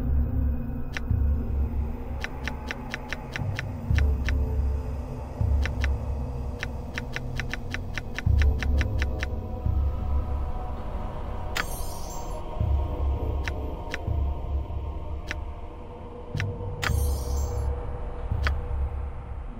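Short menu clicks tick quickly, one after another.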